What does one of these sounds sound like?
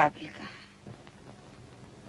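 A man speaks quietly.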